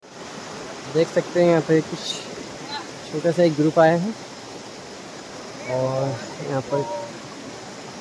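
A young man speaks nearby outdoors.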